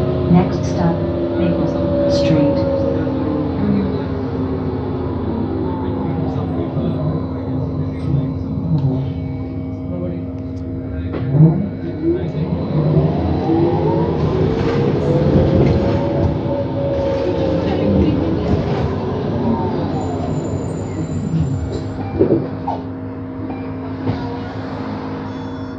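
A bus engine hums steadily from inside.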